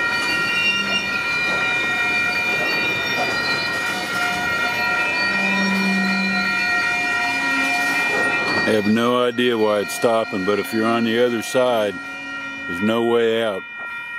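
A freight train rolls slowly past on the tracks.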